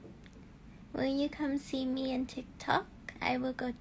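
A young woman speaks casually, close to a phone microphone.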